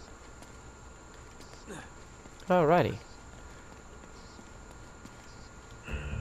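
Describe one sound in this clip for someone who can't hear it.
Footsteps crunch on dirt and leaves.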